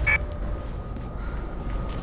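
A heavy metal door is pushed open.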